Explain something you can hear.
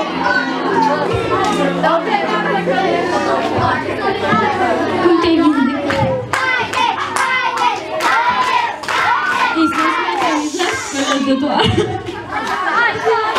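A young girl sings into a microphone, heard through a loudspeaker.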